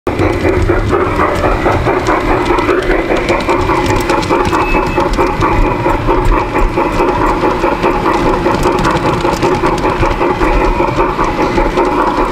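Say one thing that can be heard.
A model train motor whirs steadily up close.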